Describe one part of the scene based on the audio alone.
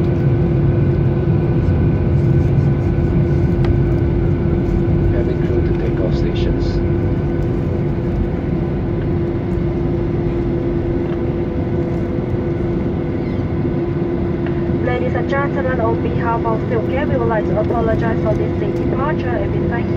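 A plane's tyres rumble over the runway as it taxis.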